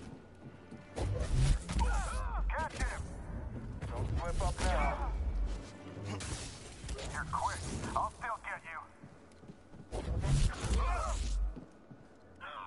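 Heavy booming impacts rumble.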